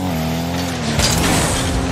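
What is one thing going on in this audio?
A booster roars with a rushing hiss.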